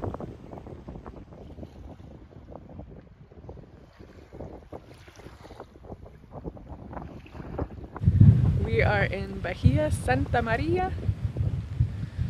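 Water splashes against the hull of a moving boat.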